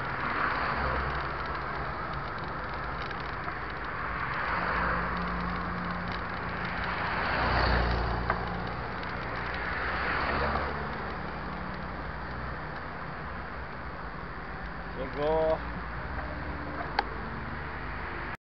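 Traffic rumbles steadily in the distance.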